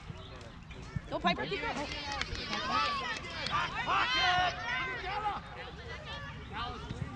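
Children shout and call out excitedly across an open field, some way off.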